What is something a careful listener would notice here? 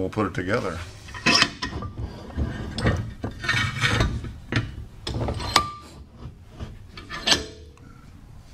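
A metal mechanism clicks and rattles.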